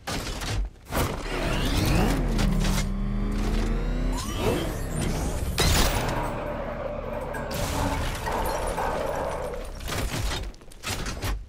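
A vehicle engine revs and roars, rising and falling in pitch.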